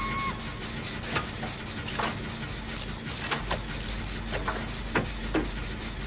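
Metal parts clank and rattle as a machine is repaired by hand.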